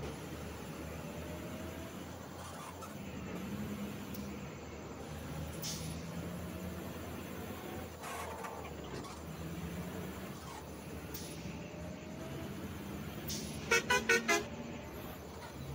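A bus engine hums steadily as it drives along a road.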